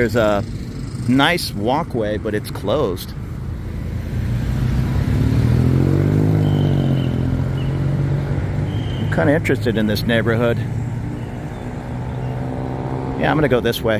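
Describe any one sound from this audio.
Traffic drives along a nearby street.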